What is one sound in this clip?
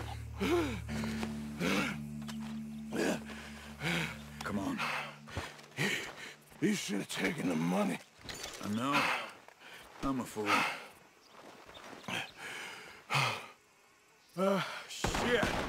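A man speaks nearby in a raised voice.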